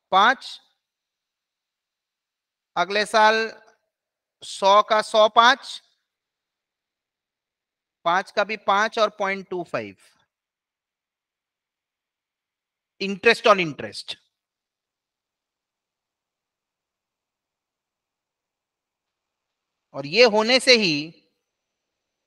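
A young man explains calmly in short phrases through a microphone, with pauses.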